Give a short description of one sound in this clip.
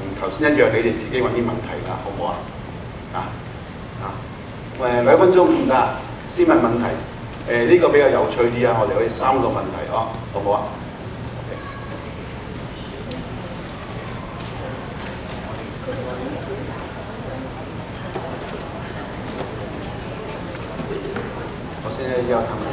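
A middle-aged man speaks with animation through a microphone in a large hall.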